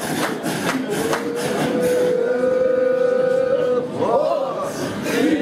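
A man chants a long, drawn-out note that wavers at the end.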